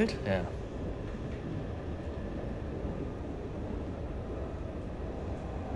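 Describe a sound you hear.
A train rumbles steadily while moving.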